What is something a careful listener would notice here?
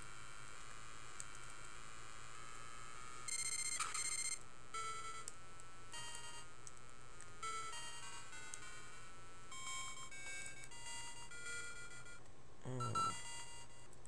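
Chiptune game music plays steadily.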